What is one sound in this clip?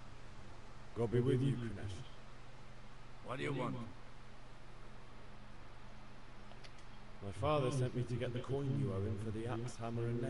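A young man speaks calmly in a clear, close voice.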